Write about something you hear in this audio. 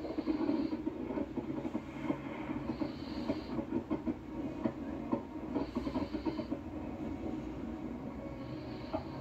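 Fireworks crackle and pop through a television speaker.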